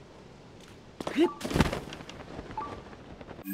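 A glider cloth flaps open with a rush of wind.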